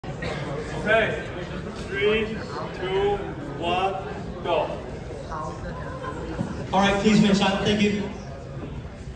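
A man announces loudly with animation in an echoing room.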